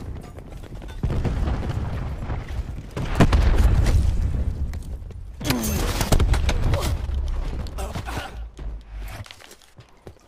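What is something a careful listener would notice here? Gunfire bursts loudly.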